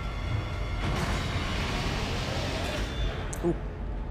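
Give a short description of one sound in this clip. A heavy metal door grinds and slides open.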